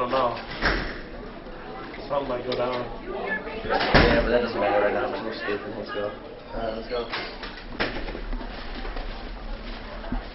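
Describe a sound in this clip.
A second young man answers in a relaxed voice.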